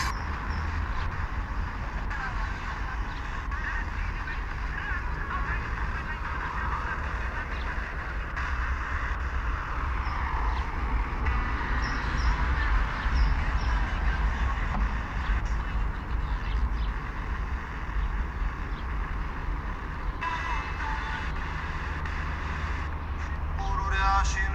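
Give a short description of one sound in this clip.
An FM radio on a mobile phone hisses with static while tuning between stations.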